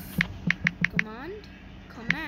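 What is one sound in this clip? Phone keyboard taps click quickly several times.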